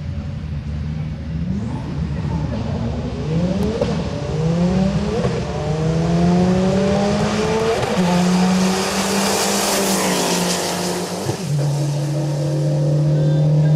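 Drag race cars launch at full throttle and shift up through the gears.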